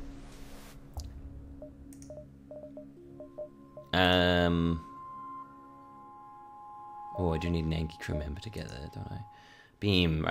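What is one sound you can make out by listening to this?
Soft game menu clicks sound now and then.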